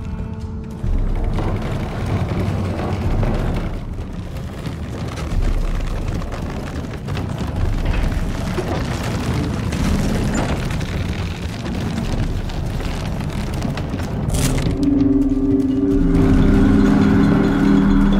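Footsteps run over soft dirt and leaves.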